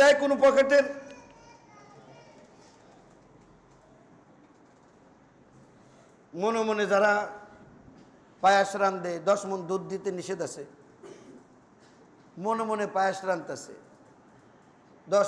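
A man speaks calmly into a microphone in short bursts, with pauses between phrases.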